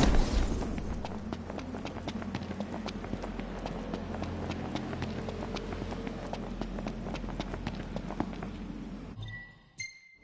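Quick footsteps run over hard ground.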